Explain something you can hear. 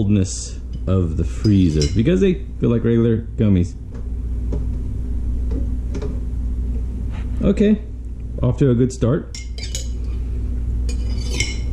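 A spoon clinks against a glass while stirring.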